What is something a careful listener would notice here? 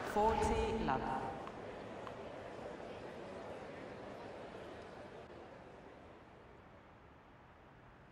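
A crowd murmurs softly in a large arena.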